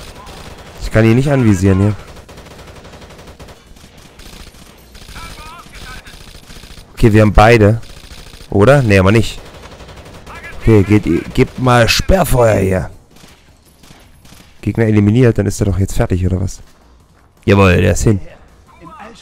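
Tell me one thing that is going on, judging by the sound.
Short bursts of rapid automatic gunfire ring out, close by.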